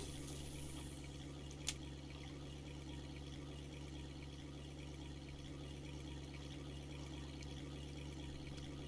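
A boat's motor hums steadily.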